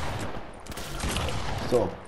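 A gun fires several quick shots.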